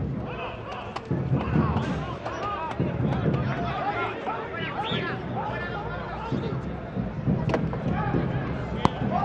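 Young men shout to each other outdoors, some way off.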